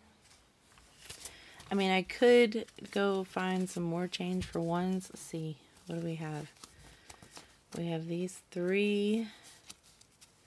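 Paper banknotes rustle and flick as they are handled and counted.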